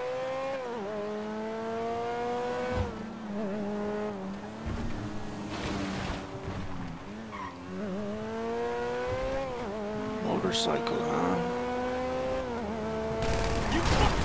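A car engine revs up and drops in pitch as it shifts gears.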